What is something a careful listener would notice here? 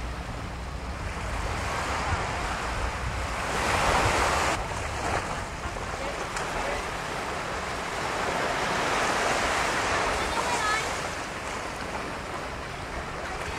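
Waves wash softly onto a shore outdoors.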